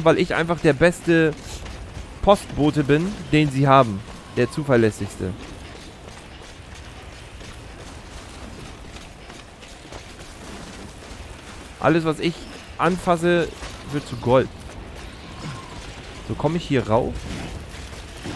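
A man talks with animation close to a microphone, in bursts.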